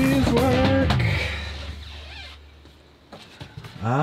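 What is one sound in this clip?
A cabinet door swings open.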